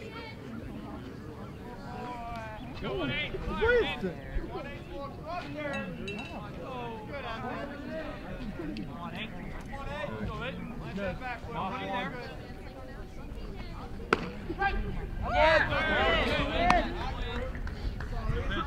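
Young men shout and chatter across an open field.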